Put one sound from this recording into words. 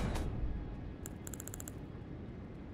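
Short electronic blips tick quickly as a menu selection moves.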